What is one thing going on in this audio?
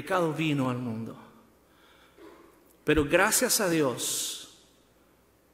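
A man speaks slowly and solemnly into a microphone, heard through loudspeakers in a large echoing hall.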